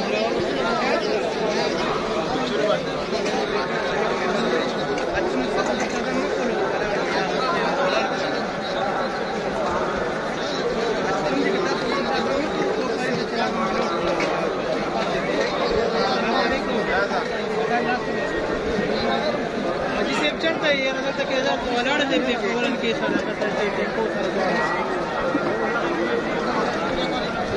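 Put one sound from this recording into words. A large crowd of men murmurs and chatters all around, outdoors.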